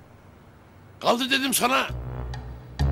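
An older man shouts in alarm.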